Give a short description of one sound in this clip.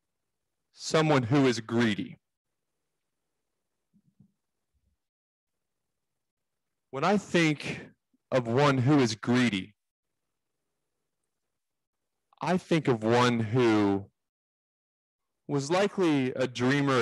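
A young man sings into a microphone in short phrases with pauses between them.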